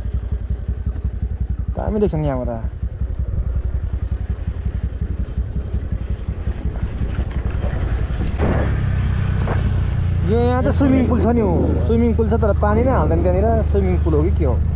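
A motor scooter engine hums steadily while riding.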